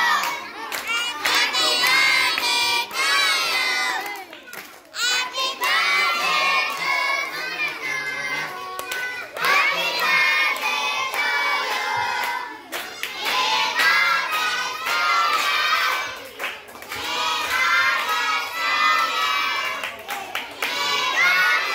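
A group of children sing loudly together nearby.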